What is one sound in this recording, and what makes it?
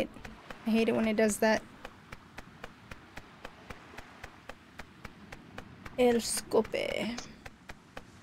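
A woman speaks briefly close to a microphone.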